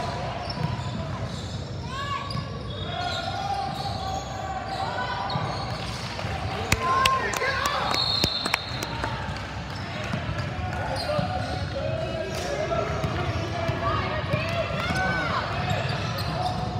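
Young girls shout and call out across a large echoing gym.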